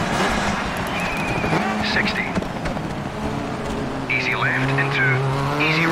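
Tyres squeal as a car slides through a bend.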